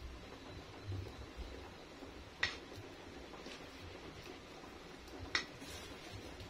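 A utensil scrapes and taps inside a metal pot.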